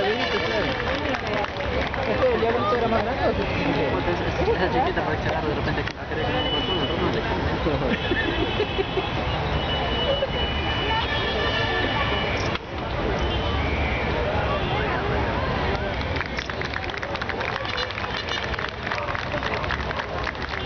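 A crowd of spectators chatters all around, close by in open air.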